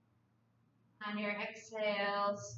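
A woman speaks calmly through a close microphone.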